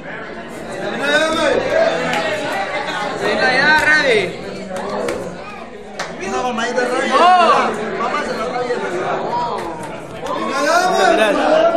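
Men laugh and cheer loudly.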